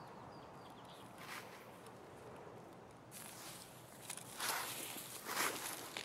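Leafy branches rustle and brush as someone pushes through bushes.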